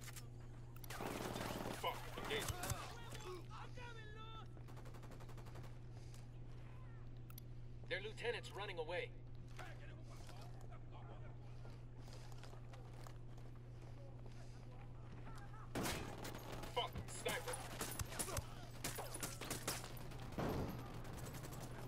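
Gunshots fire in short bursts.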